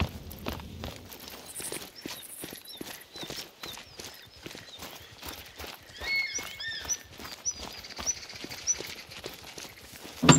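Footsteps scrape and tap on stone outdoors.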